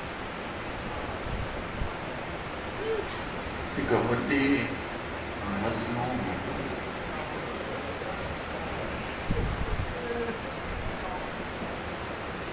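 A man speaks into a microphone to a gathering, his voice carrying through a loudspeaker in a large room.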